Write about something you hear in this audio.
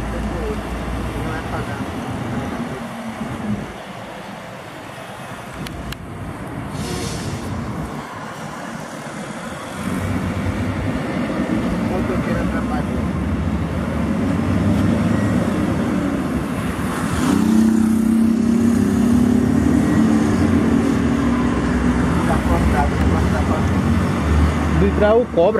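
Heavy truck engines rumble steadily as the trucks climb slowly.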